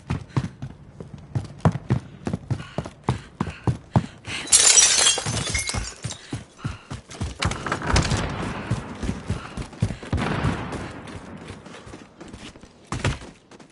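Quick footsteps patter over the ground.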